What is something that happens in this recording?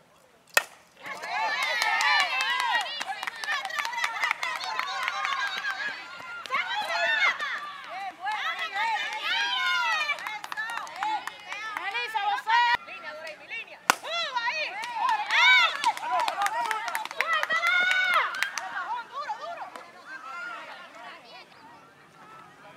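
Young women shout and cheer excitedly nearby.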